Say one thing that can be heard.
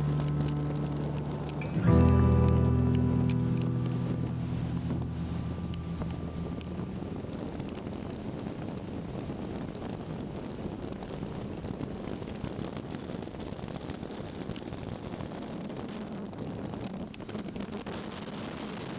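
Small waves lap and splash against a boat.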